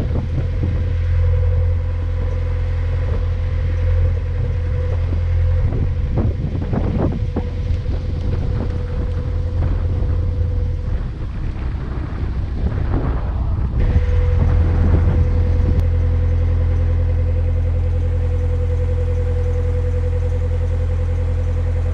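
A boat engine chugs with a steady low drone.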